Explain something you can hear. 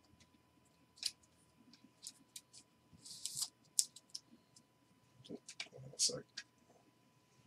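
A plastic card case clicks and rustles in hands.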